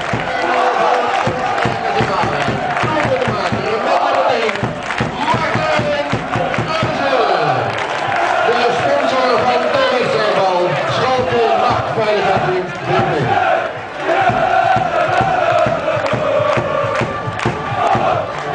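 A large crowd of men and women sings and chants loudly together, echoing under a roof.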